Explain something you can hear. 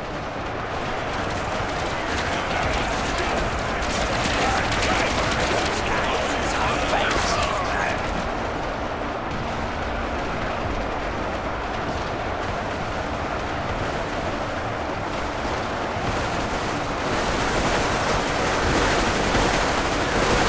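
A vast battle roars with clashing weapons.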